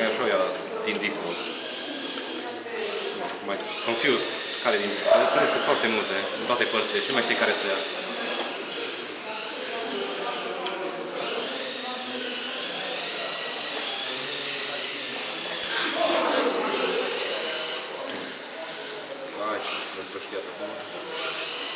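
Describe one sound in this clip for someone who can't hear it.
A small robot vacuum pushes light foam pieces that scrape and rattle across the floor.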